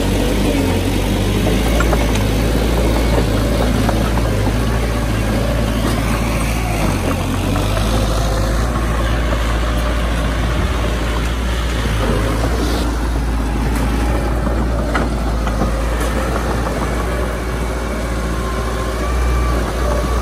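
A small bulldozer's diesel engine rumbles steadily nearby.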